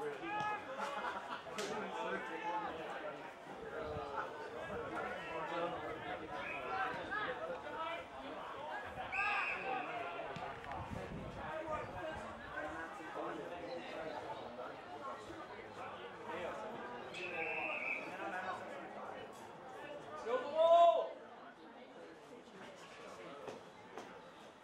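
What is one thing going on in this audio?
Players shout and call out across an open field.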